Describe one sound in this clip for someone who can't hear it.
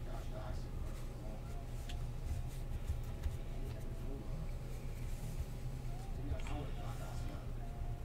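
Trading cards slide and shuffle between hands.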